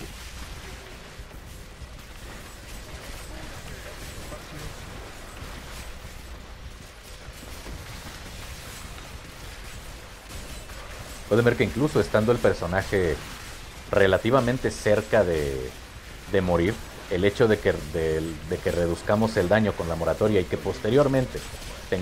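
Magic spells crackle and explode in quick bursts.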